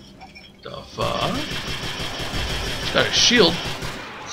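An energy gun fires bursts of shots, with blasts going off.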